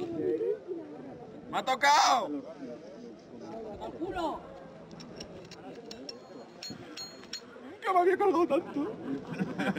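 Adult men talk nearby in lively voices.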